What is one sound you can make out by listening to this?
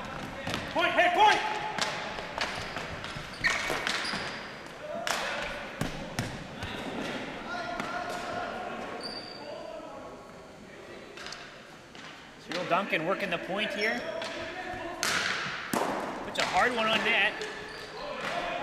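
Players shout and call out to each other, echoing in the hall.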